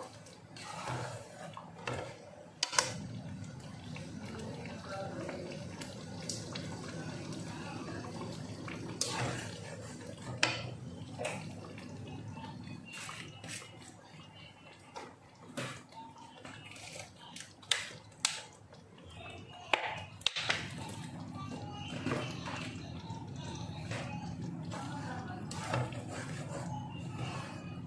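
A thick sauce bubbles and sizzles steadily in a pan.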